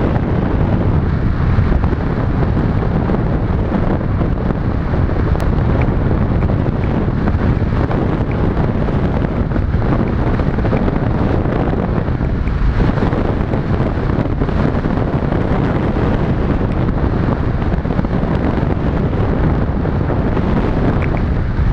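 Strong wind roars steadily past a hang glider in flight.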